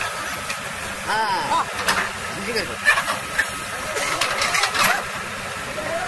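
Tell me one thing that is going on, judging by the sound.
An excavator bucket scrapes and knocks against loose soil.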